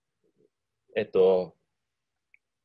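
A young man speaks briefly over an online call.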